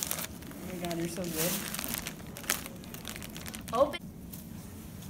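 Wrapping paper rustles and crinkles close by.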